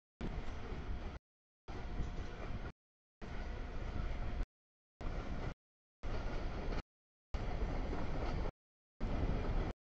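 A freight train rolls past on steel rails.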